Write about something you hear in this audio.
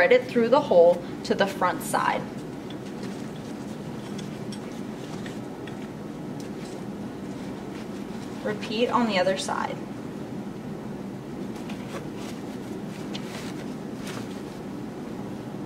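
Fabric rustles as straps are handled.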